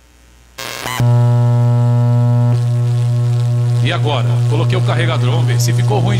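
Electronic dance music with a deep, steady bass starts suddenly and plays loudly.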